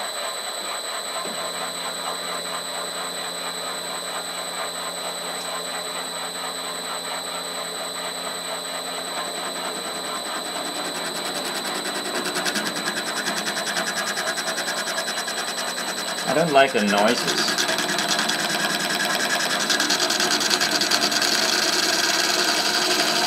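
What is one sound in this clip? A router bit whirs and cuts through wood, growing louder.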